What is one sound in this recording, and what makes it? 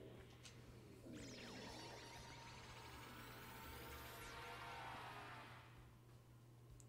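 A shimmering magical whoosh swells and then cuts off.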